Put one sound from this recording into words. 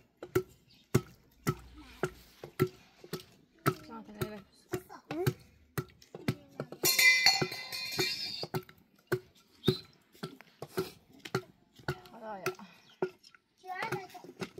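A wooden pestle thuds steadily in a metal pot.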